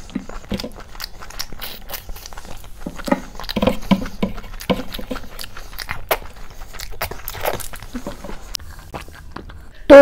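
A young woman chews food wetly and smacks her lips close to a microphone.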